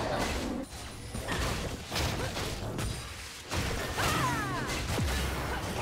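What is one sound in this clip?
Fantasy game spell effects whoosh and crackle in quick bursts.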